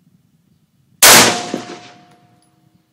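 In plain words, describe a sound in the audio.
A rifle fires a single loud shot outdoors, echoing and fading.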